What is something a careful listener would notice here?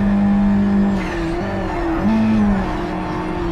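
Tyres screech on tarmac through a corner.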